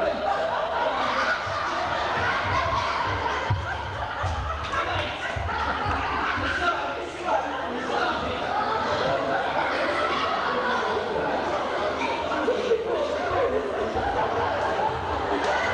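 Several men talk over one another close by in an echoing room.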